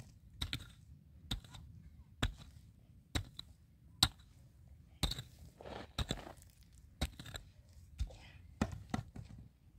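A hoe strikes hard dry ground in steady, repeated blows.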